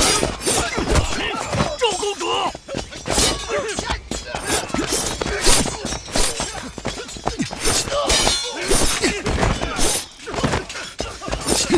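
Swords clash and clang sharply again and again.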